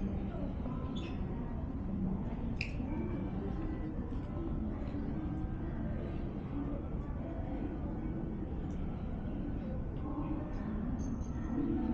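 A low, steady rumble and murmur fill a large echoing underground hall.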